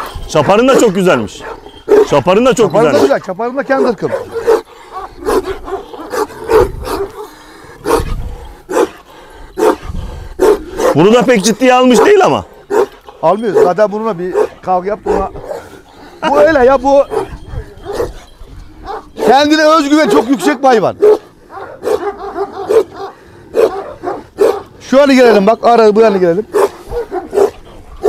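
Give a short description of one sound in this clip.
Large dogs bark and snarl fiercely close by.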